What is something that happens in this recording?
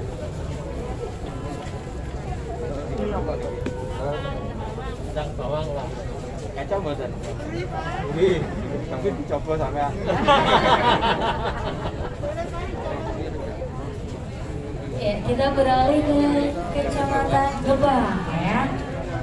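Several people talk in the background of a busy outdoor crowd.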